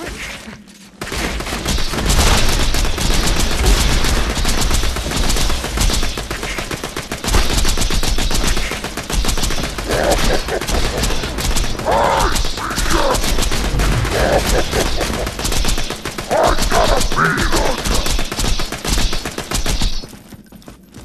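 Rapid gunfire rattles and booms in quick bursts.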